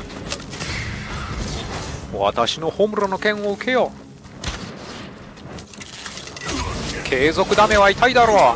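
A sword slashes through the air with sharp swishes.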